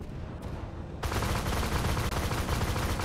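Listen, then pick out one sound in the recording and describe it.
A loud blast erupts and roars on.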